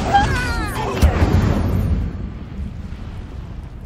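A fiery blast bursts with a loud booming rumble.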